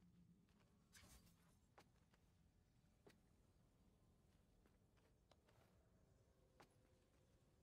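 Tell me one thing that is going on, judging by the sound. Metal blades clash and strike in quick blows.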